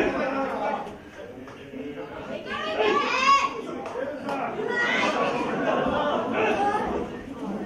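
A crowd murmurs and calls out in a large hall.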